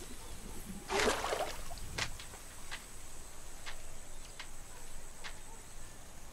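A small fish flops and slaps against the dry ground.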